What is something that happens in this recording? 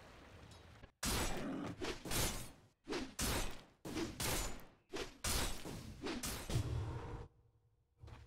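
Magic spell effects burst and crackle in a fast fight.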